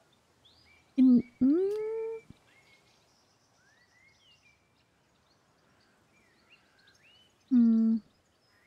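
A young woman speaks in short, animated exclamations close to a microphone.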